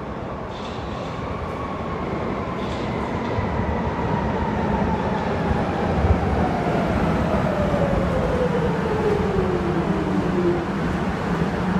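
Train brakes squeal with a slowly falling pitch.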